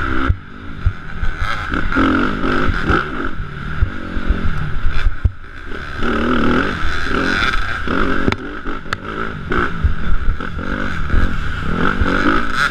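A motorcycle engine revs hard and rises and falls in pitch close by.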